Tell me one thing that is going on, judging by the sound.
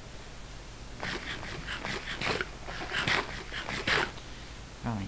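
Quick crunchy chewing sounds repeat rapidly.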